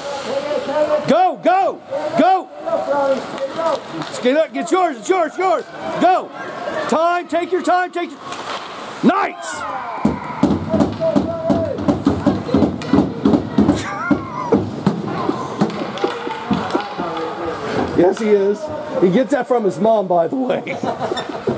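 Spectators shout and cheer loudly nearby.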